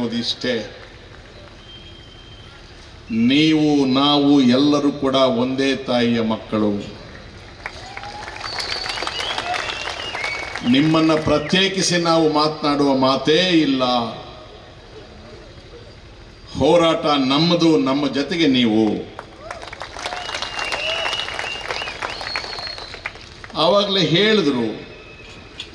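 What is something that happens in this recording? An elderly man speaks forcefully into a microphone over loudspeakers, in bursts with pauses.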